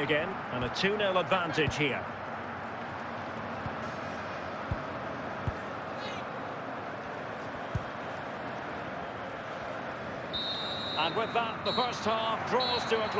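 A stadium crowd murmurs steadily.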